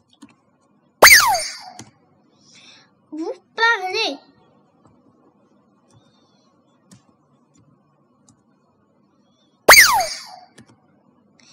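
A short bright chime rings and quickly falls in pitch.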